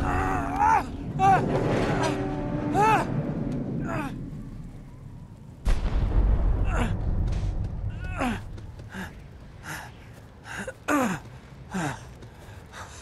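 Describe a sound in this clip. A young man gasps and groans with strain.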